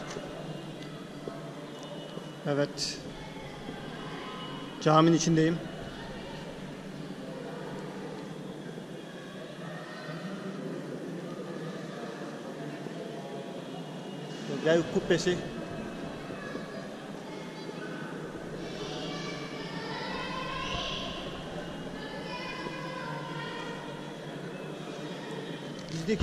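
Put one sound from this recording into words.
Men talk quietly at a distance in a large echoing hall.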